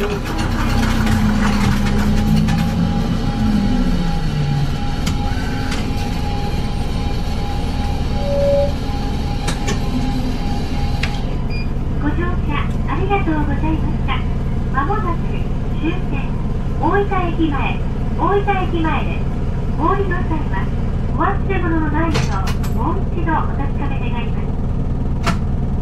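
A diesel city bus engine idles, heard from inside the bus.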